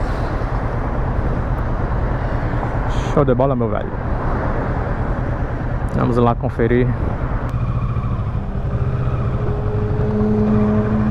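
Wind rushes and buffets past a moving motorcycle.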